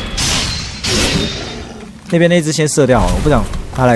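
A sword strikes a creature with a crackling burst.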